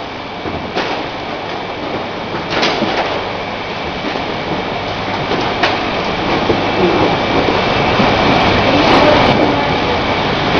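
A bottling machine hums and whirs steadily.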